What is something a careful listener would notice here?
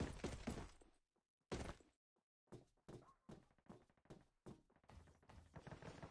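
Footsteps clang on a metal ladder during a climb.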